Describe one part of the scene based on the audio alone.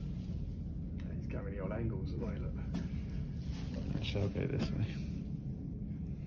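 A man talks calmly nearby, muffled by a face mask.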